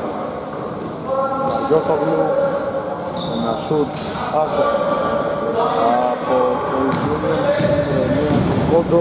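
Young men shout and call out to one another in a large echoing hall.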